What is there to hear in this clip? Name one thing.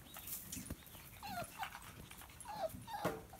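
Puppies whimper faintly.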